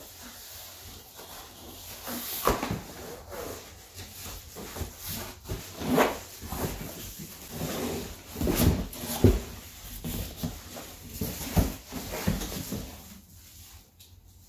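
A cardboard box slides and thumps as it is lifted off.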